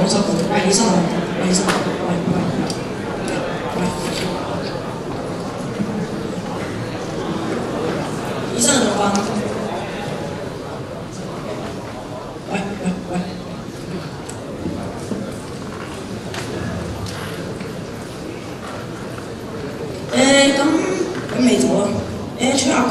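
Young actors speak loudly on a stage, heard in a large echoing hall.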